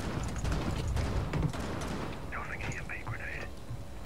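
Footsteps thud on metal stairs.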